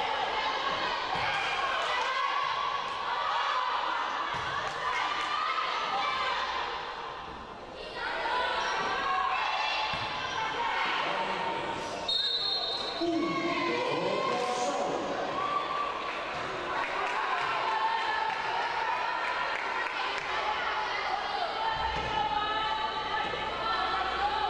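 Voices of players and onlookers chatter and call out in a large echoing hall.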